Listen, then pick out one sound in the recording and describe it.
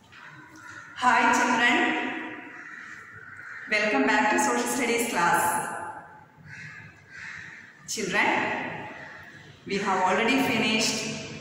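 A middle-aged woman speaks calmly and clearly, close by.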